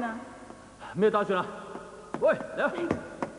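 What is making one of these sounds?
A young man exclaims loudly.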